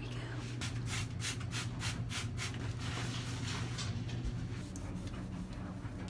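A toilet brush scrubs inside a toilet bowl.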